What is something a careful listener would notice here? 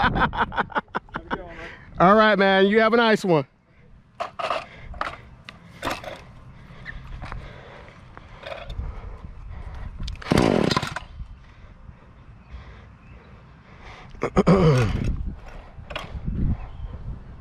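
A small petrol engine runs close by and revs up in short bursts.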